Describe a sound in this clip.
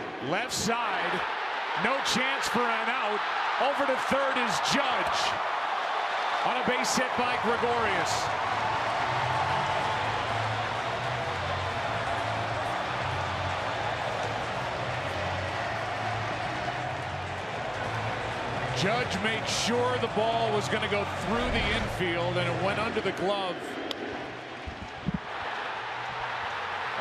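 A large crowd cheers and roars loudly in a big open stadium.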